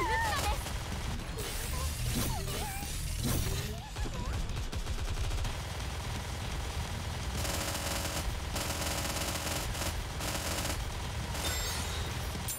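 Energy blasts zap and crackle.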